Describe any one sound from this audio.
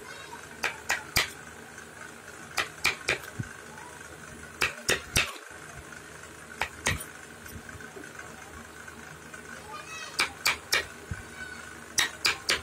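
A metal tool scrapes and scratches at wood.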